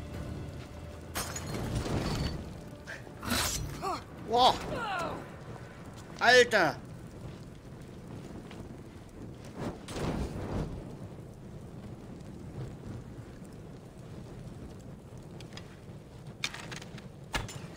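Flames crackle softly.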